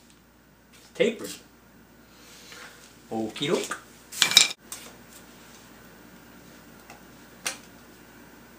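Metal tools clank and scrape against a metal part.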